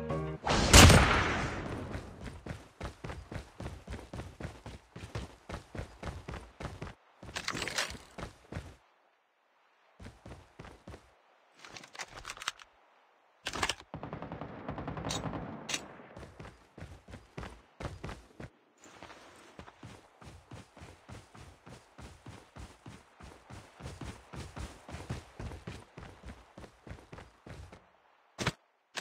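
Footsteps run quickly and steadily.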